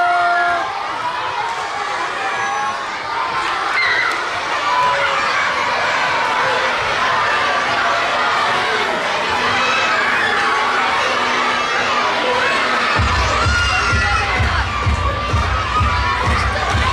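A large crowd of children chatters and shouts loudly in an echoing hall.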